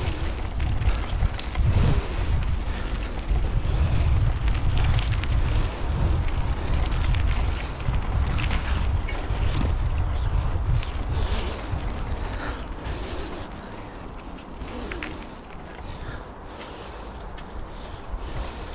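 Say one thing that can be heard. Wind buffets a microphone outdoors with a low rumble.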